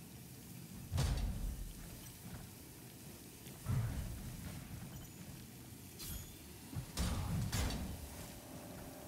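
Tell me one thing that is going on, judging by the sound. Heavy blasts boom and rumble.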